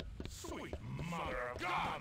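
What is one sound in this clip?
A heavy blow thuds against a body.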